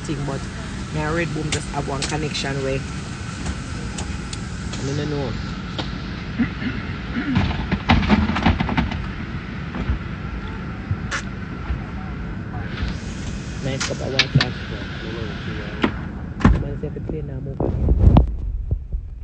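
A young woman talks casually, close to the microphone.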